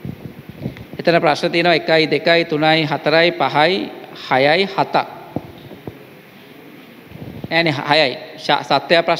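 A young man reads aloud into a microphone in an echoing room.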